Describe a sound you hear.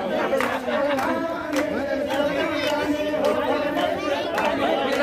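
Hands clap in a steady beat.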